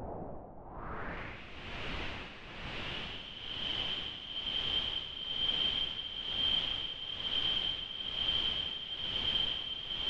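A high electronic whistling tone rises in and holds steady.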